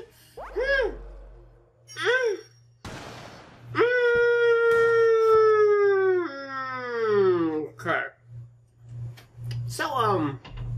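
A young man wails in a long, drawn-out groan close to a microphone.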